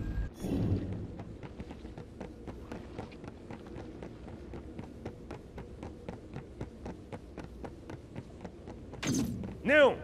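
Footsteps run quickly on a stone floor.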